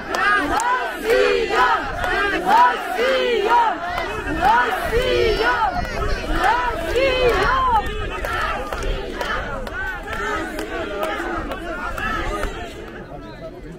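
A large outdoor crowd of men and women sings together loudly.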